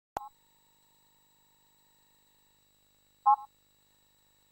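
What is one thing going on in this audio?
A short electronic menu chime sounds twice.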